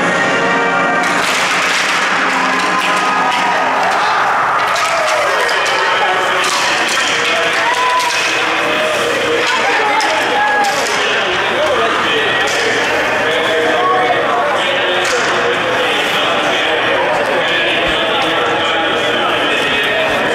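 Hockey sticks tap against the ice.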